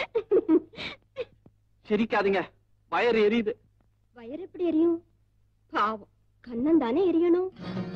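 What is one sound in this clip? A young woman laughs and talks into a telephone.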